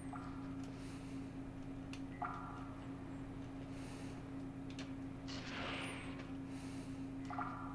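Game sound effects chime in short bursts.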